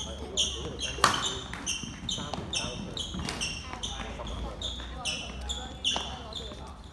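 A racket strikes a shuttlecock with a crisp pop.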